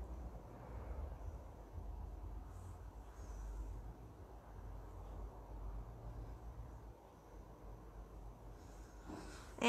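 Hands softly rub and press a soft sheet of sugar paste.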